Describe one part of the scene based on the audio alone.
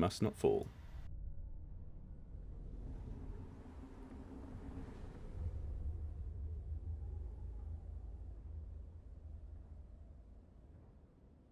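Wind blows steadily over open snow.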